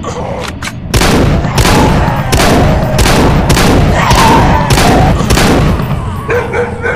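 A scoped rifle fires shots in a video game.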